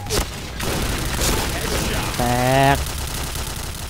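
A shotgun fires in quick blasts.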